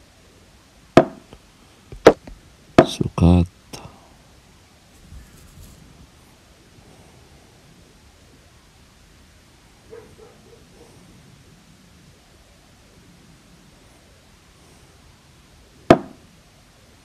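A chess piece clicks sharply into place on a board.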